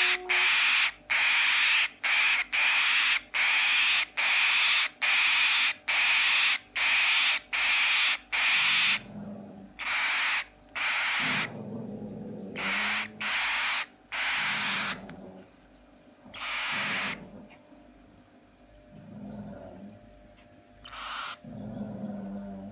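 A baby bird screeches loudly in rapid, repeated bursts, close by.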